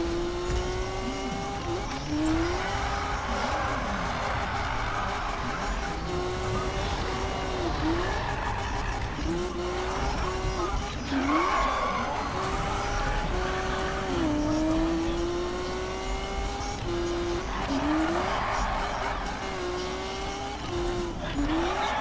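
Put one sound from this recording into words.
A car engine revs high and shifts up and down through the gears.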